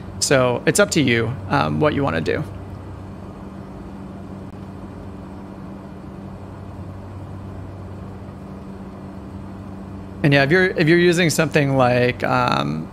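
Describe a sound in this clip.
An aircraft engine drones steadily.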